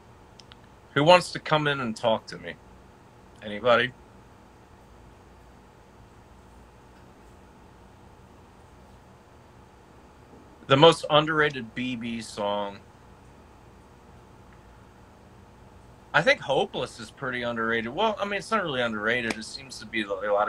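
A man speaks casually into a phone microphone close by, in short bursts with pauses.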